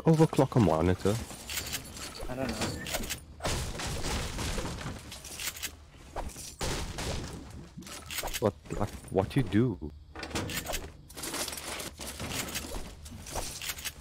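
A pickaxe strikes wood and metal with sharp knocks.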